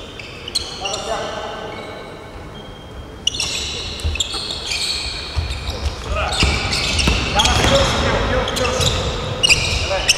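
Men call out to each other in a large echoing gym.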